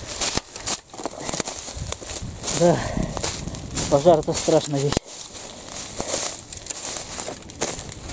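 A smouldering ground fire crackles nearby.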